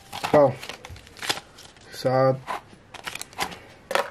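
A paper card rustles.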